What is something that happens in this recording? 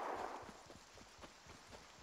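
Water splashes as a game character wades through it.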